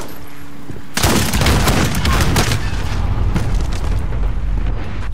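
Rapid gunshots fire close by.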